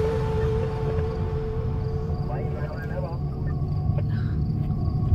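A car hums steadily as it drives along.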